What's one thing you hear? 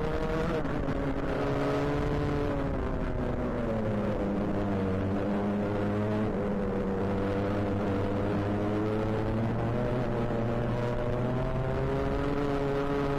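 Wind rushes past a microphone.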